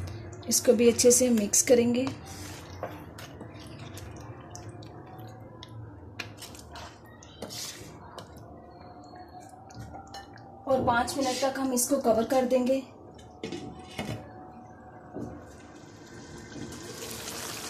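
A stew bubbles and sizzles gently in a pan.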